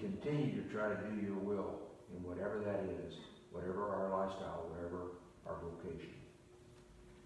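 An elderly man speaks calmly nearby in a room with a slight echo.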